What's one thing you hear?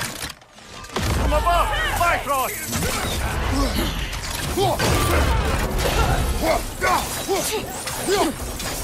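Heavy blows thud and clash in a fierce fight.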